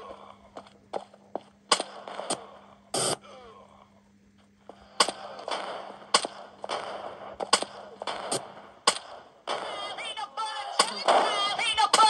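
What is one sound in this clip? Gunshots from a shooting game ring out in short bursts through a small speaker.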